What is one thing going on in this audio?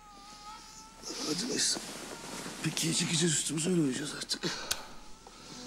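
A woman talks in a low, weary voice close by.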